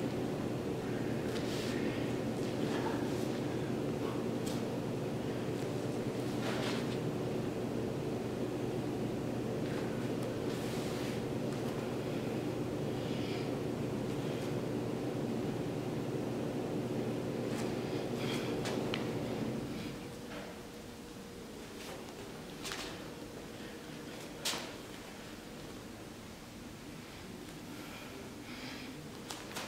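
Hands and feet thump softly on a floor mat.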